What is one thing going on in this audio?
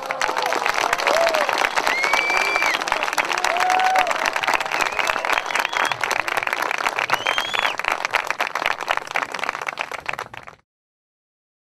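A crowd of men and women cheers and calls out loudly.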